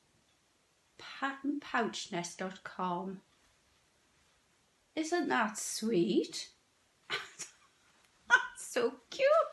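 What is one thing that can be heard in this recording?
An older woman speaks calmly close by, pausing between phrases.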